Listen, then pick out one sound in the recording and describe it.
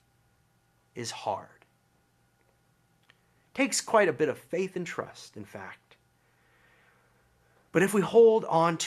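A young man speaks calmly into a microphone, close by, in short bursts with pauses.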